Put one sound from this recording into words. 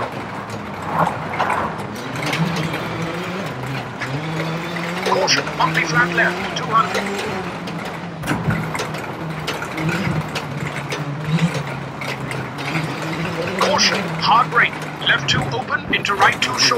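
Tyres crunch and rattle over loose gravel.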